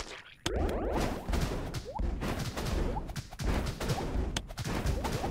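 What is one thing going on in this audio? Small game explosions pop and crackle in quick succession.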